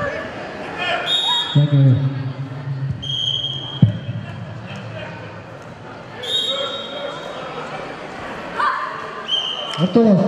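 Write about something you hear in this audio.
A referee blows short blasts on a whistle.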